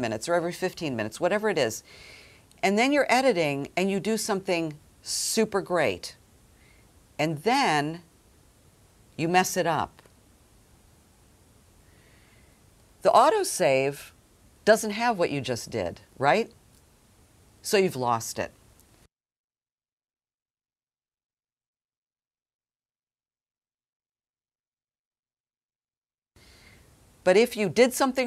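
An older woman speaks with animation close to a microphone, pausing now and then.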